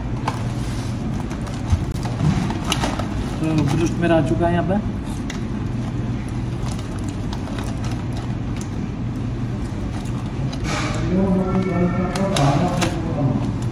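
A plastic food container crinkles and rustles as it is handled.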